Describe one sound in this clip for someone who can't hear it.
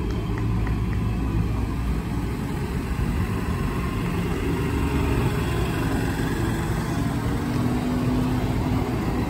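Tractor engines rumble loudly as a line of tractors drives slowly past close by.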